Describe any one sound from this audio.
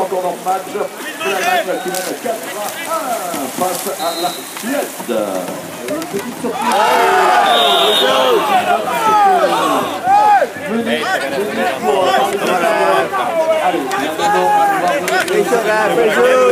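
Players shout to each other across the water, louder from about seven seconds.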